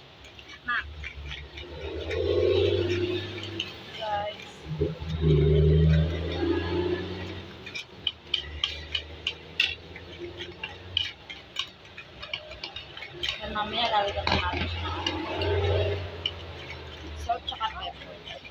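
A fork clicks and scrapes against a bowl while mixing.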